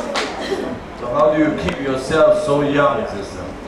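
An elderly woman speaks into a microphone, heard through a loudspeaker.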